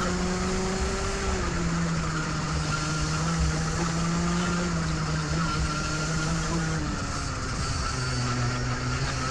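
A kart engine buzzes loudly up close, its pitch shifting with speed.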